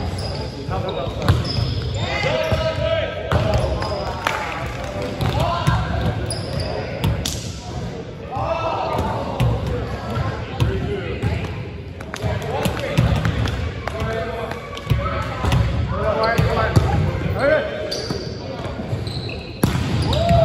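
Men call out and chatter in a large echoing hall.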